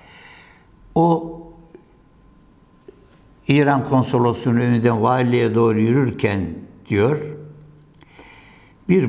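An elderly man speaks calmly and close to a microphone, in short bursts with pauses.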